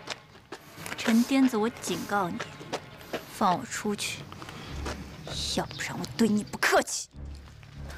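A young woman speaks firmly and close by.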